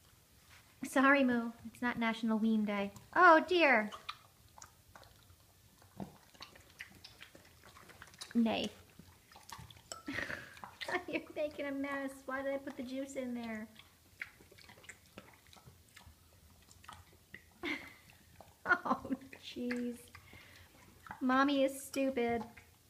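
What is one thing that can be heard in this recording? A pig chews and crunches food noisily.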